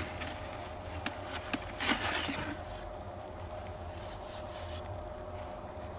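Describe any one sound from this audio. A plastic scoop squelches through thick wet mud in a bucket.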